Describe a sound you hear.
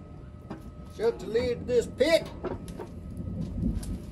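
A metal grill lid thumps shut.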